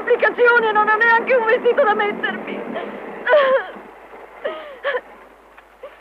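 A young woman sobs and wails close by.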